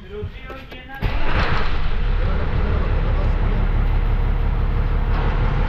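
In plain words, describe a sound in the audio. A heavy truck engine rumbles loudly from inside the cab.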